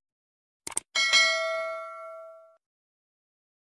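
A small bell chimes and rings out.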